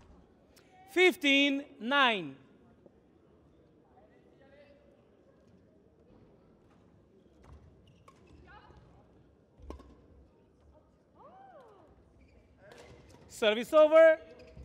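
Shoes squeak sharply on a hard indoor court.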